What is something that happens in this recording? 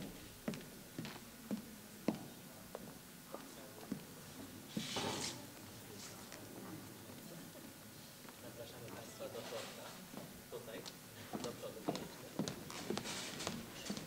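Heels click and footsteps knock on a wooden stage in an echoing hall.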